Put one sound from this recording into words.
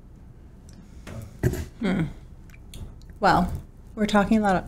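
A woman speaks calmly close to a microphone, in short phrases.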